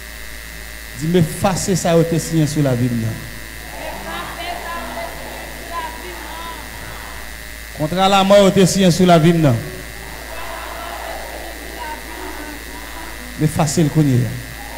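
A man sings loudly through a microphone in short bursts.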